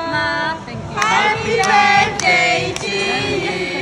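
Young women clap their hands in time.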